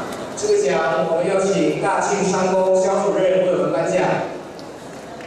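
A crowd of young people sings together loudly in a large hall.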